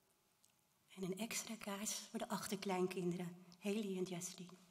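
A woman speaks calmly into a microphone, heard through loudspeakers in an echoing room.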